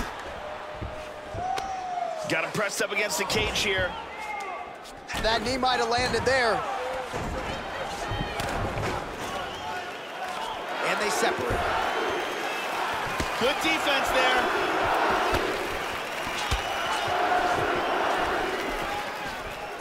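Punches and knees thud against bodies.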